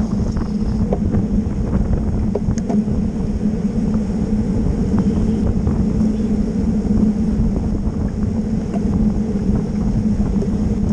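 Bicycle chains and gears tick and click now and then.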